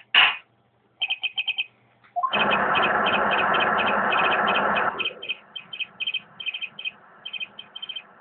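Quick electronic beeps chatter in short bursts.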